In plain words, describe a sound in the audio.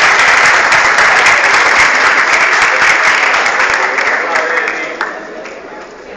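An audience claps loudly in a large hall.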